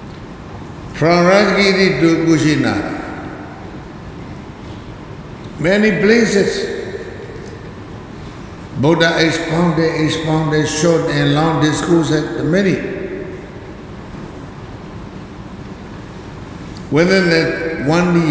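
An elderly man speaks slowly and calmly into a microphone, in bursts with long pauses.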